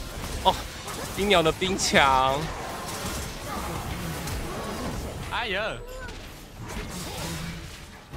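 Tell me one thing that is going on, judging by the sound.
Magic spells burst and crackle in a fast fight.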